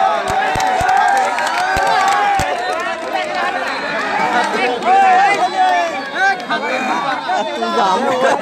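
Men and boys close by shout excitedly.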